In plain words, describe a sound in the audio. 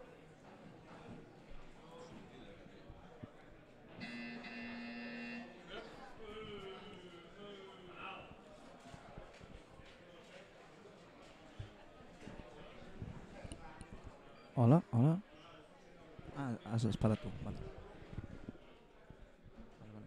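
A crowd murmurs quietly in the background.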